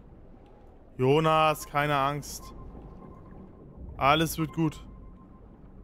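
A man speaks briefly and animatedly into a close microphone.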